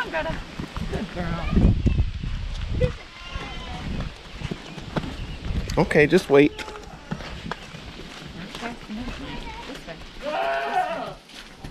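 A calf's hooves scuff on gravel.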